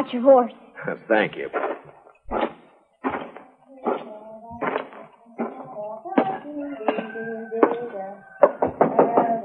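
A radio plays a muffled, tinny broadcast.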